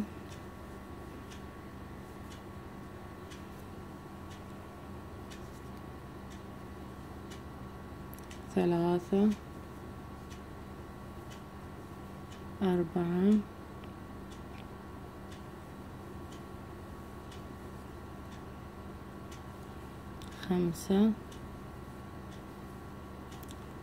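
A crochet hook softly rasps through yarn.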